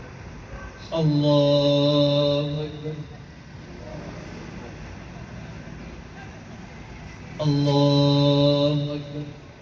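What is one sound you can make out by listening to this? A man chants loudly through a microphone and loudspeaker, in long held calls.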